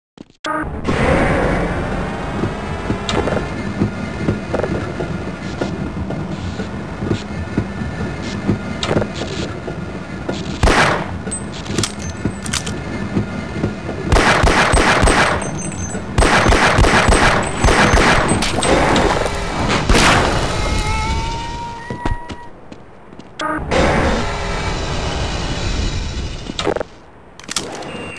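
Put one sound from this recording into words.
A rail cart rumbles and clatters steadily along a metal track.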